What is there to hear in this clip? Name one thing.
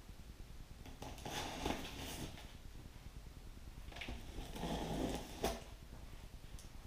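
Cardboard rustles and scrapes under a man's hands.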